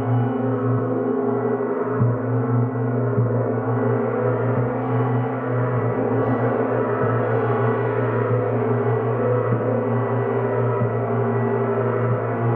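A singing bowl rings with a steady tone.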